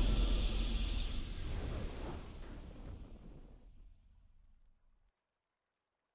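Triumphant game victory music plays loudly and then fades away to silence.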